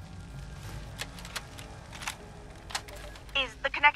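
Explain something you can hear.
A small handheld device clicks.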